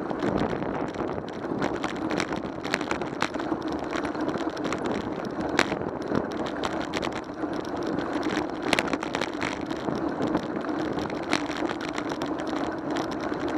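A bicycle rattles over bumps in the road.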